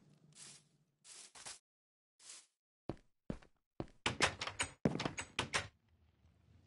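Stone blocks crunch and thud as they are dug and placed in a video game.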